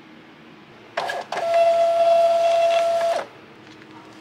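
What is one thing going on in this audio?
A label printer whirs as it feeds out paper.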